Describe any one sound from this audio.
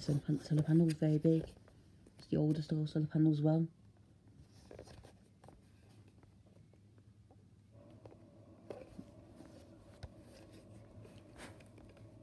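A metal casing knocks and rubs softly as hands turn it over.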